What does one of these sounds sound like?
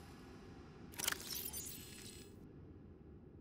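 A bright electronic swoosh sounds as a menu opens.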